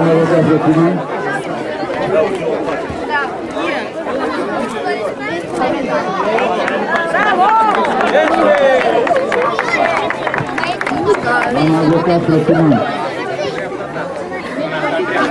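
A crowd of children and adults chatters and calls out outdoors.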